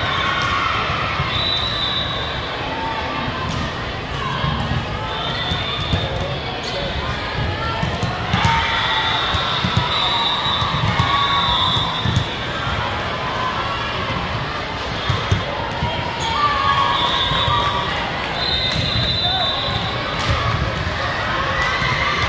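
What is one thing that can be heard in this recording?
A crowd chatters and calls out across a large echoing gym.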